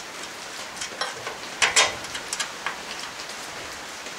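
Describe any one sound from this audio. Metal parts knock lightly as they are handled.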